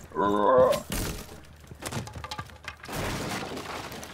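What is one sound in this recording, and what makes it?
A window pane is smashed and glass shatters.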